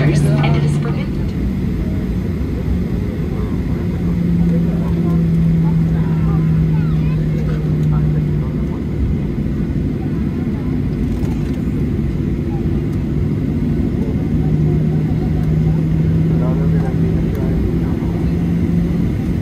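Aircraft wheels rumble over the runway.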